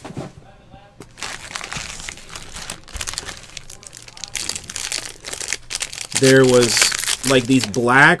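A foil wrapper crinkles and rustles as it is handled.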